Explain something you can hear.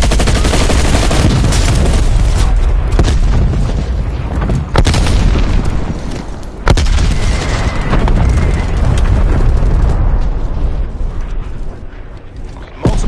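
Heavy explosions boom and rumble close by.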